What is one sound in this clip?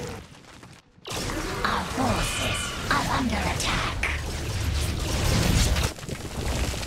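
Electronic game weapons zap and explosions burst in a battle.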